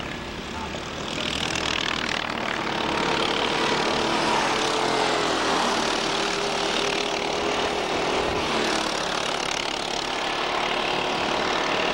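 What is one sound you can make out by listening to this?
Go-kart engines buzz and whine as karts race past outdoors.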